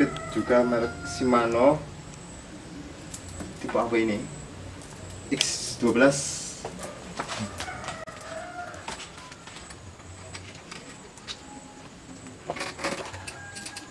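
A bicycle chain clinks and rattles as it is handled.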